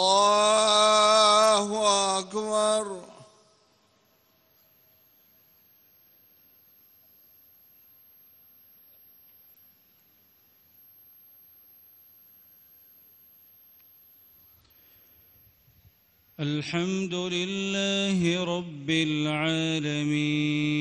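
A man chants in a long melodic voice through loudspeakers that echo across a large open space.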